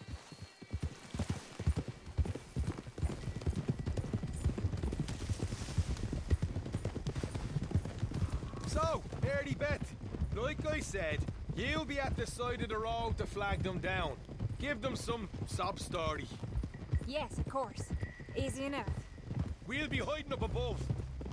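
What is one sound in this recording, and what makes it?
Horses gallop with rhythmic thudding hoofbeats.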